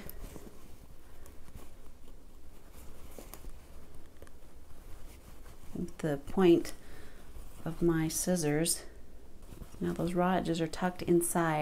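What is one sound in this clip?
Fabric rustles softly close by.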